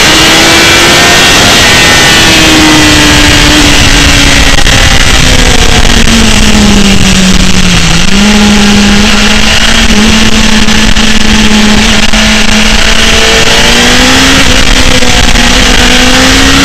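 A motorcycle engine roars loudly up close, its pitch rising and falling with the gears.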